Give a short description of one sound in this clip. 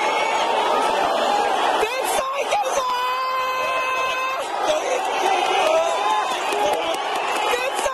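A crowd of people chatters and murmurs outdoors.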